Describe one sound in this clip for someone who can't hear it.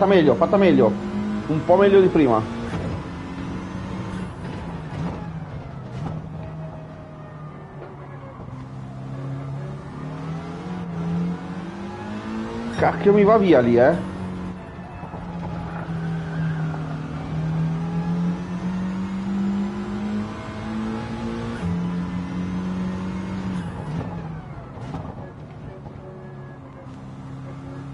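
A race car engine roars and revs up and down through gear changes.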